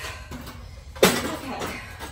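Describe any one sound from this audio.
A metal frame clanks down onto concrete.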